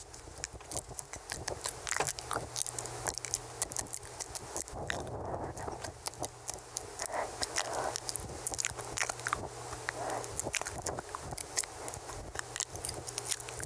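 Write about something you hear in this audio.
Wet mouth clicks and smacks sound very close to a microphone.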